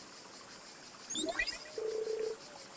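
A rising electronic tone sounds as a call connects.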